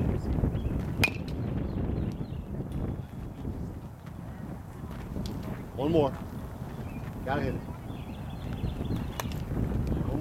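A metal bat sharply pings against a baseball several times.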